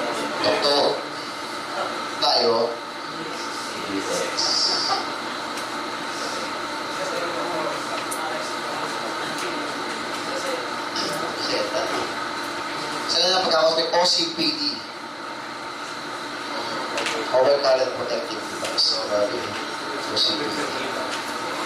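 A man speaks into a microphone in short bursts, heard through a loudspeaker.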